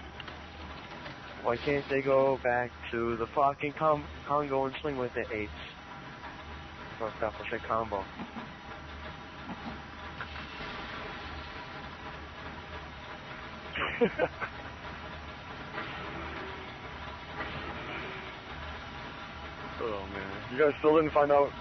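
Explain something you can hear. A deep engine hum drones steadily.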